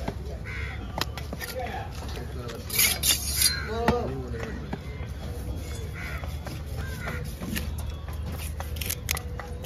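A heavy blade knocks against a wooden block.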